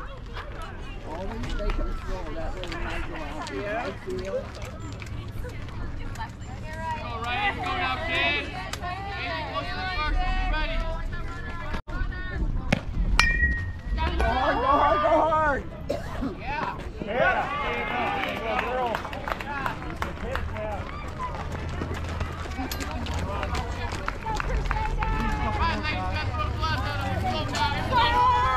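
Young women and girls shout and cheer loudly nearby outdoors.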